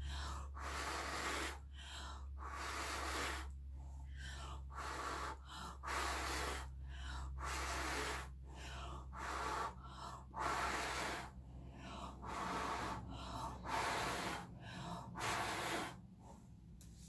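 A person blows air close by in short, repeated puffs.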